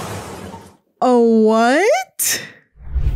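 A young woman cries out and wails into a close microphone.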